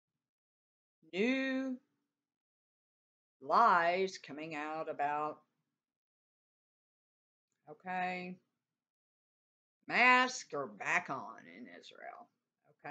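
A middle-aged woman speaks calmly in short phrases, heard close through a microphone.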